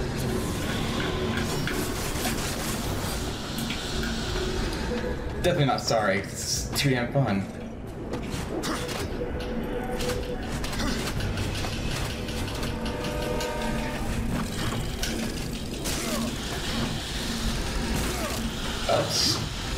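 Game sound effects and music play.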